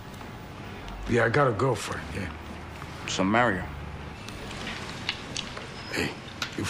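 An older man speaks in a low voice close by.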